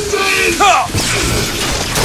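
A crackling electric blast bursts out.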